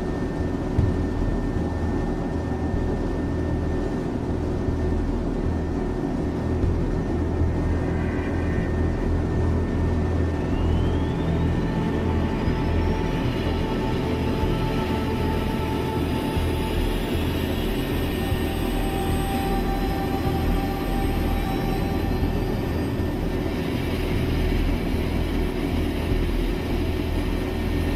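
A ship's engine rumbles low and steadily.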